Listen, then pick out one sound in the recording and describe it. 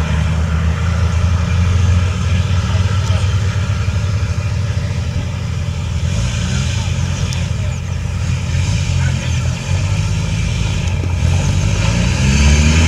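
A large off-road vehicle's engine rumbles steadily at idle.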